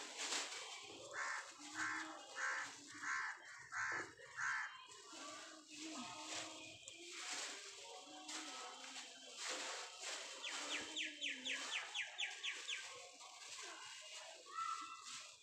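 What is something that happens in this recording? A plastic sheet crinkles and rustles as a hand handles it.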